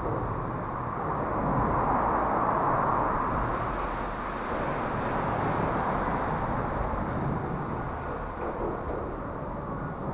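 Small plastic tyres crunch and scrape over loose stones.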